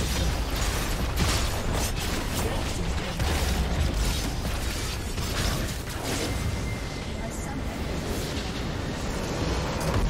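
Game spells and weapons clash in rapid bursts of hits.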